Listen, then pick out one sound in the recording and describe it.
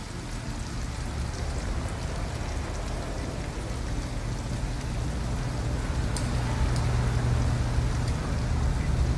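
A car engine rumbles closer, growing louder.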